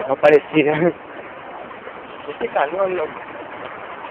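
A young man speaks loudly nearby outdoors.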